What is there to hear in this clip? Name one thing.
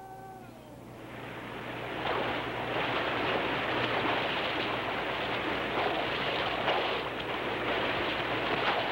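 Water rushes and churns loudly.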